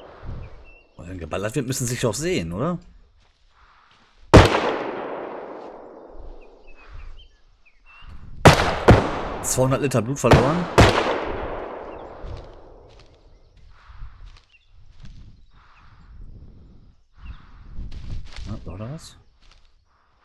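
A middle-aged man talks through a headset microphone.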